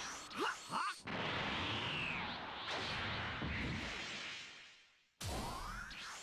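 A burst of power roars loudly.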